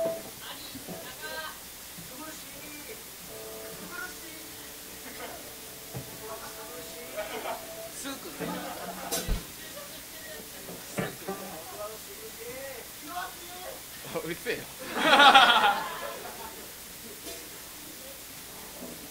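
Electric guitars play scattered notes and tuning plucks through amplifiers.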